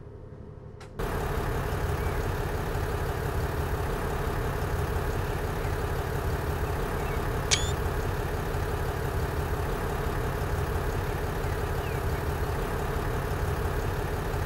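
A diesel railcar engine idles with a loud, steady rumble.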